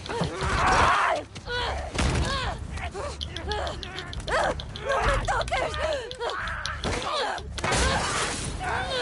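A young woman screams and shouts in a struggle.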